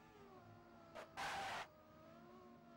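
A race car bangs sharply as the car hits a wall.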